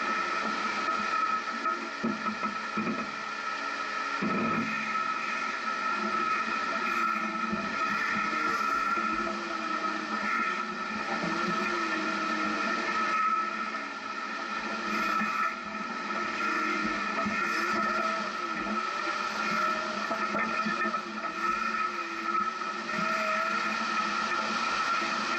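Tyres grind and crunch over loose rock.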